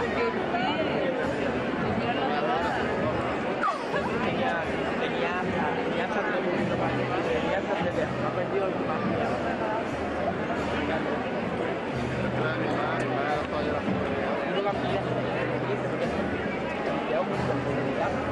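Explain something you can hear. A large crowd murmurs and chatters close by.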